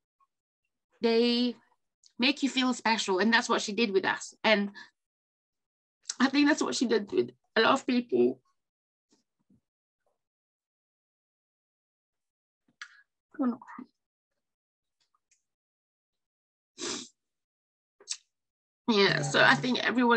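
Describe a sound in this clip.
A woman speaks with emotion over an online call, pausing and breaking off.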